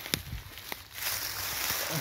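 Dry leaves rustle as a hand brushes them aside.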